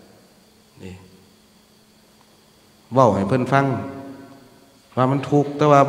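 A man speaks calmly into a microphone, close by.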